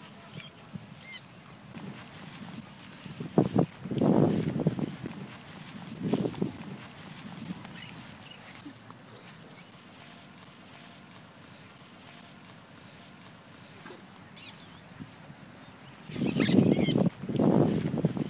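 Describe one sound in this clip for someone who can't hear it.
Crows caw nearby.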